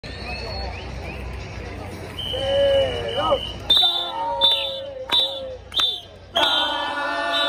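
A crowd of fans sings and chants loudly outdoors.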